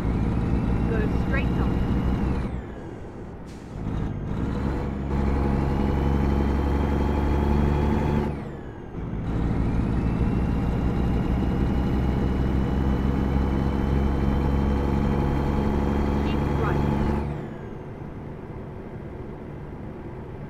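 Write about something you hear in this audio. A heavy truck engine rumbles, climbing in pitch and dropping back with each gear change.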